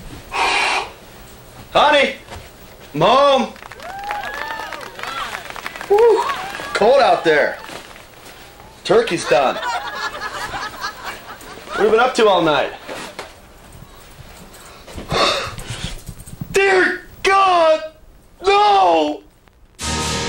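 A man shouts and wails in anguish, close by.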